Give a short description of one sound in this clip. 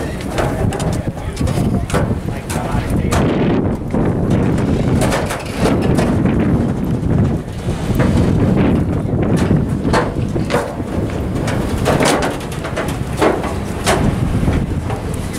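Footsteps thud on a metal gangway.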